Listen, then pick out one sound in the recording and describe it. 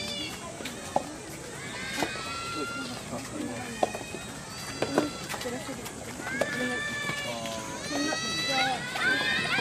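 A tennis ball is struck by rackets with sharp pops.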